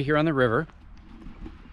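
A middle-aged man speaks close by, briefly.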